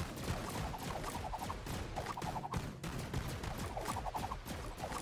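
Game turrets fire in rapid bursts of gunshots.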